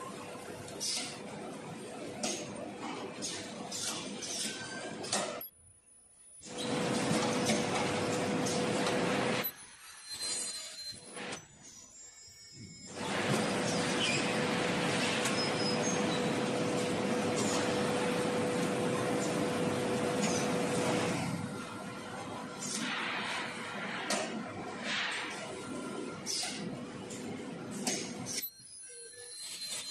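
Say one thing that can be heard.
Packing machines hum and whir loudly.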